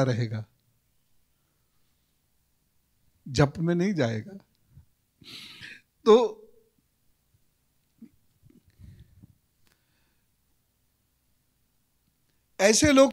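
A middle-aged man speaks into a microphone in short, calm bursts with pauses.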